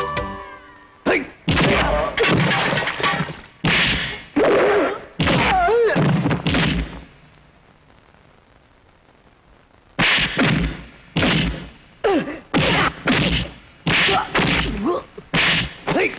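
Heavy punches land with loud thuds and whooshes.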